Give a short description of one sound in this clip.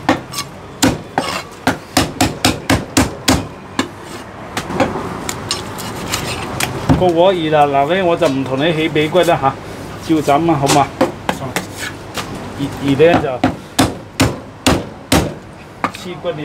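A heavy cleaver chops repeatedly on a wooden block with sharp, rapid knocks.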